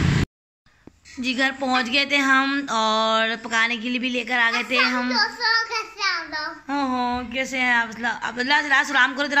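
A young boy talks and laughs close by.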